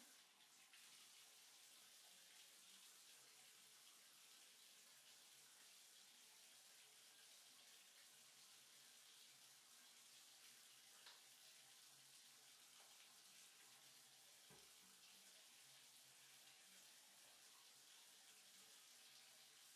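Water splashes softly as a dog is washed.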